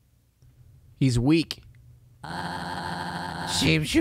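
A young man speaks briefly and animatedly into a close microphone.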